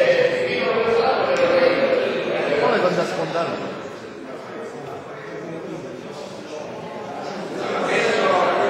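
A crowd of men talk over one another in a large echoing hall.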